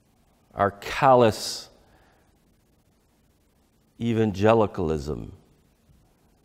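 A middle-aged man speaks with animation through a lapel microphone, pausing between phrases.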